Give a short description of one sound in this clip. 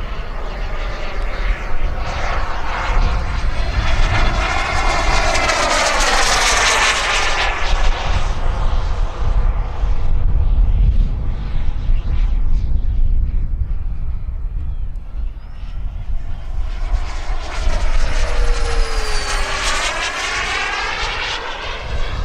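A turbine model jet whines as it passes overhead, its pitch sweeping up and then down.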